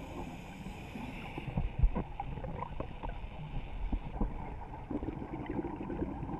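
Water murmurs with a low, muffled rumble, heard from underwater.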